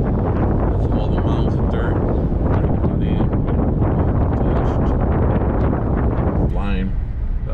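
Wind rushes loudly past an open car window.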